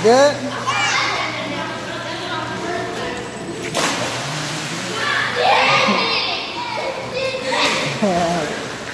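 Young children shout and squeal playfully in an echoing room.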